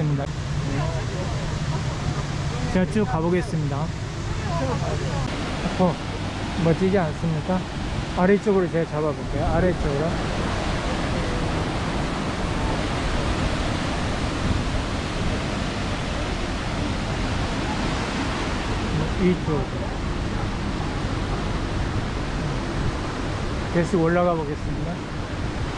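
Water rushes and splashes steadily over rocks.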